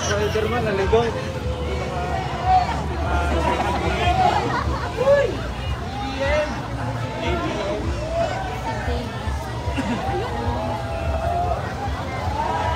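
A large crowd of men and women cheers and shouts outdoors.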